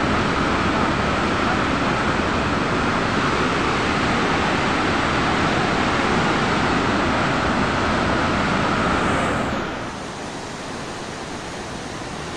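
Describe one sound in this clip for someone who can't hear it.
A swollen flooding river roars and rushes.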